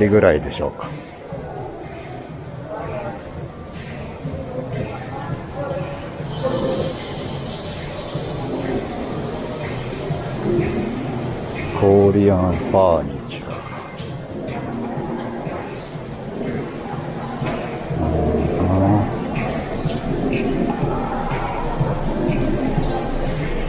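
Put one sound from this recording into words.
A steady, echoing murmur fills a large indoor hall.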